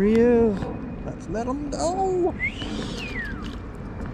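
A fish splashes as it drops into water.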